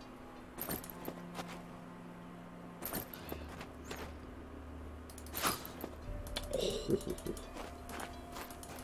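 A character's footsteps rustle through grass.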